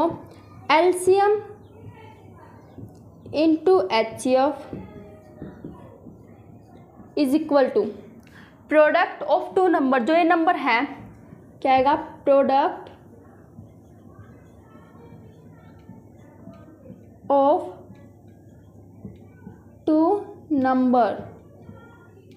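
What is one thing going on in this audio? A young woman speaks calmly and clearly, close by, in short phrases.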